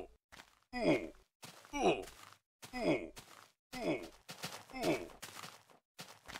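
A pig squeals in pain again and again.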